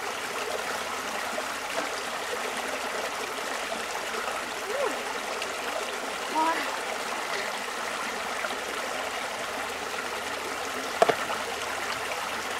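Hands splash and scoop in shallow water.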